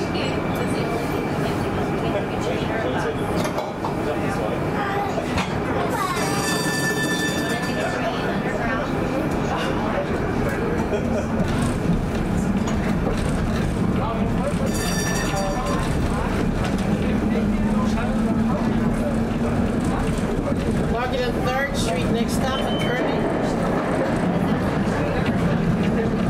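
A tram rumbles steadily along its rails.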